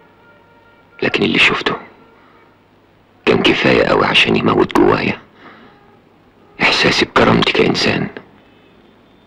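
A middle-aged man speaks close by in short, earnest bursts.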